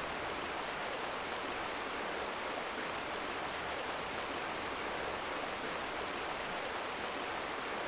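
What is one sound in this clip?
Water rushes and splashes steadily.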